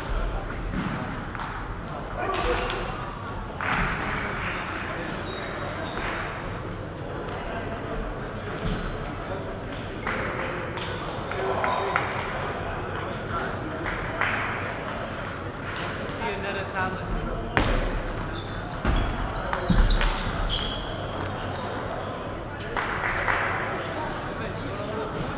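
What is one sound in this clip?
Sneakers squeak on the floor as players move.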